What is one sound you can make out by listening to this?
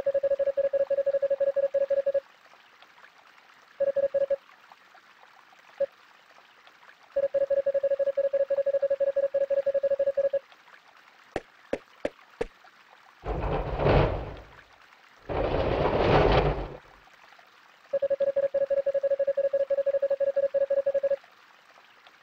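Rapid electronic blips chirp in short runs.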